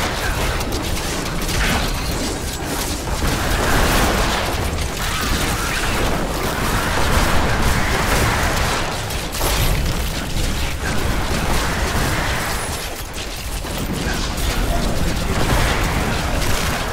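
Monsters grunt and shriek as they are struck.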